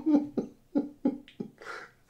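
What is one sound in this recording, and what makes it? A man laughs loudly.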